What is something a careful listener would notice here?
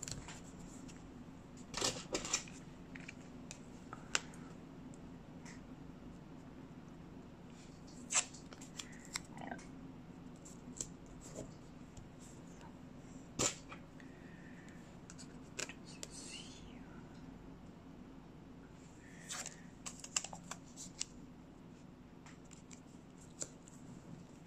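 Paper rustles and crinkles as hands handle a sheet.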